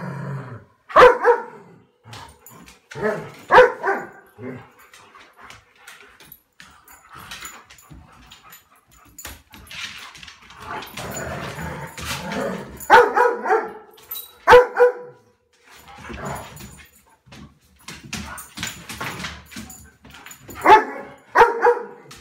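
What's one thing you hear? Dogs bark in short, loud bursts.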